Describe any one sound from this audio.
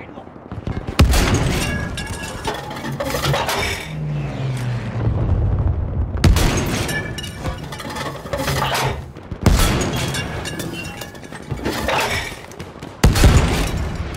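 A field gun fires with a loud boom.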